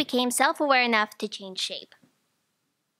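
A young woman reads aloud into a microphone.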